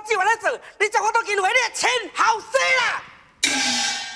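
A performer sings in a high, wavering voice in an opera style.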